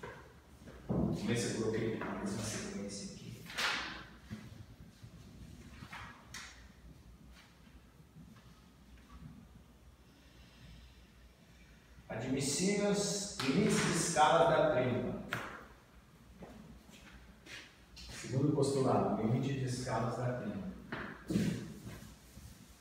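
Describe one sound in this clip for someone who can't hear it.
An elderly man speaks calmly in a room with a slight echo.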